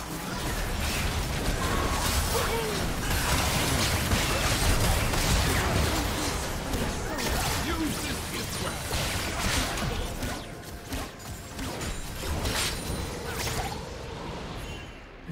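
Magic spells crackle and burst in a busy fight.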